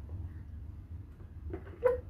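A plate scrapes across a wooden table.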